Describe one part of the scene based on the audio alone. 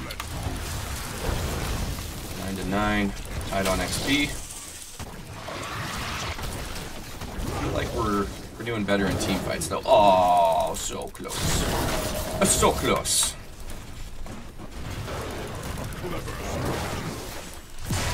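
Game spells and attacks crackle and boom in quick bursts.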